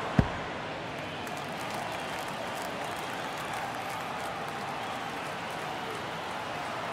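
A stadium crowd murmurs steadily in the background.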